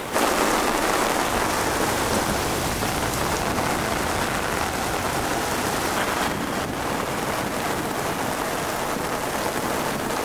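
Wind blows hard outdoors.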